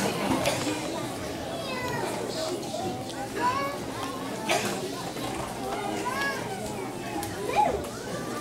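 Young children sing together into microphones.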